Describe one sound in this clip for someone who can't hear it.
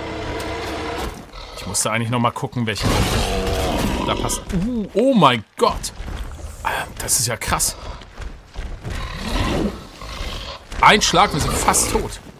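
A large beast roars and growls.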